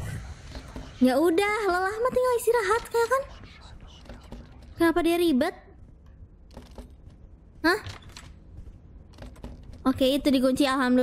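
A young woman talks with animation into a microphone, in high-pitched bursts.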